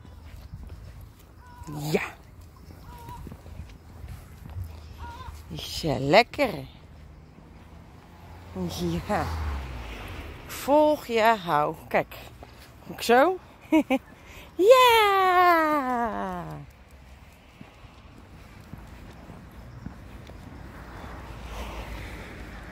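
A dog's paws patter on paving stones.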